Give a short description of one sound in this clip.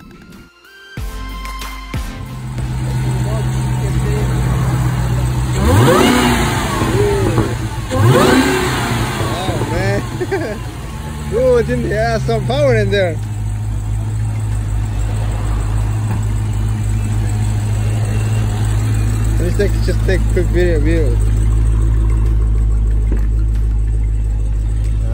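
A large car engine idles with a deep, steady rumble.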